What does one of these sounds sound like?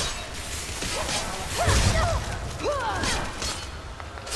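A man grunts and shouts with effort.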